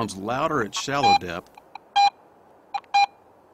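A metal detector gives short electronic beeps.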